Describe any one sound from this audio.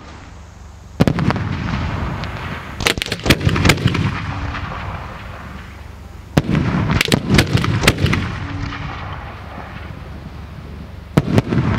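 Fireworks boom loudly overhead, echoing away.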